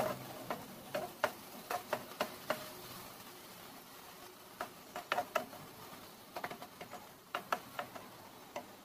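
Vegetables sizzle softly in a frying pan.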